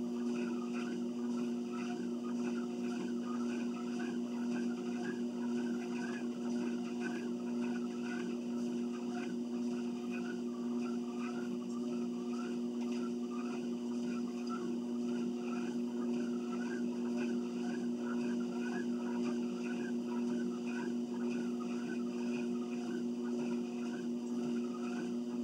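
Footsteps thud on a moving treadmill belt.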